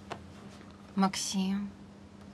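A young girl speaks quietly, close by.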